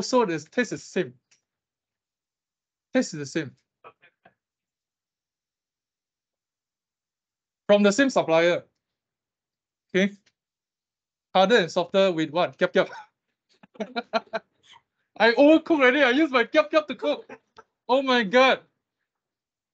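A young man speaks calmly through an online call, in short bursts with pauses.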